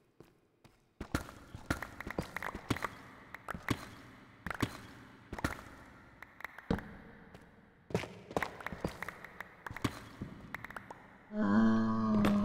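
A pickaxe chips at stone blocks with quick, repeated crunching taps.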